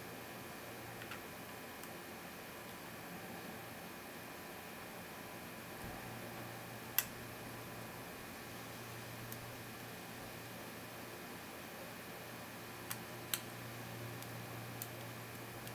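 Small metal tools click and scrape faintly inside a padlock.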